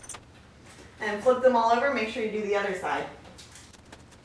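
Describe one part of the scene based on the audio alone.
A young woman speaks brightly and close by.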